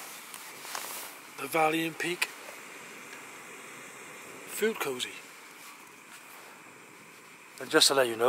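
A nylon stuff sack rustles as it is handled.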